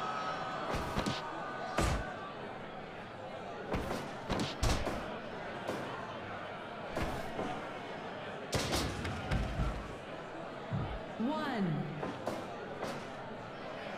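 Heavy thuds of bodies hitting the ring mat ring out again and again.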